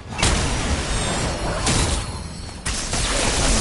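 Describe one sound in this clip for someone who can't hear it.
Sparks crackle and hiss loudly.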